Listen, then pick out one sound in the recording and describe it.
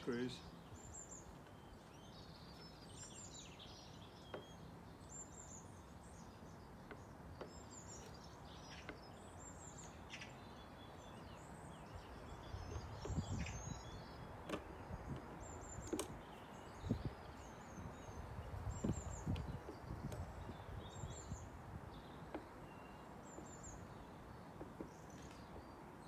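A hand tool scrapes and knocks against wood close by.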